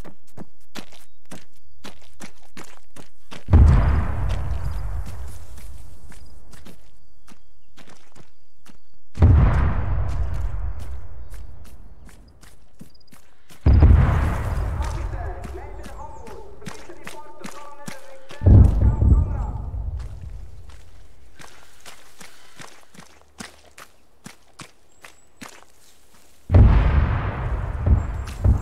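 Footsteps tread steadily over ground and grass.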